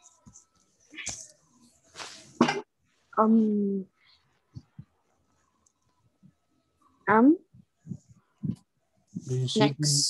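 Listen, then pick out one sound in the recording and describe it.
A young boy speaks slowly into a close microphone, in short phrases with pauses.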